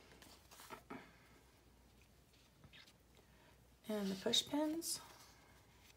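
Sheets of paper rustle and flap as they are handled.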